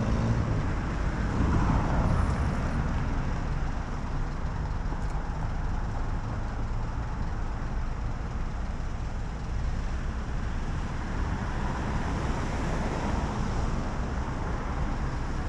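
Cars swish past on a nearby road.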